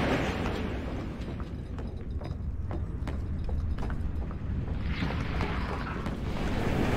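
Footsteps tap on wooden floorboards.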